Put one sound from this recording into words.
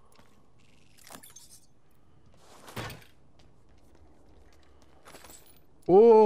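Short metallic clicks and rustles of game items being picked up.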